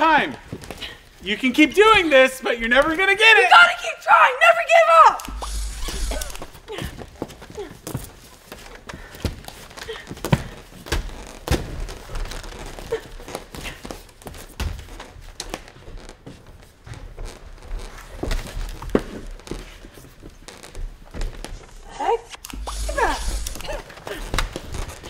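A child speaks excitedly in a high, squeaky voice close by.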